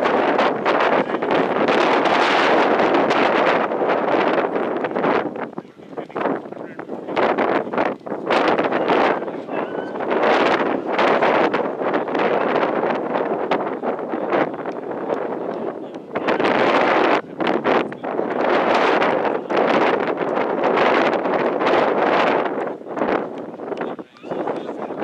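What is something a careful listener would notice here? Strong wind gusts across the microphone outdoors.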